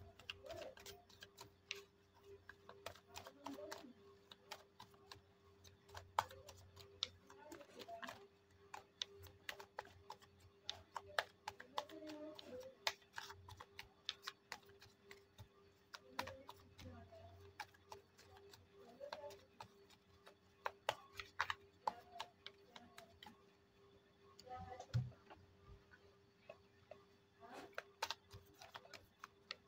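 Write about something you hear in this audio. Playing cards are shuffled, with quick rustling flicks and taps throughout.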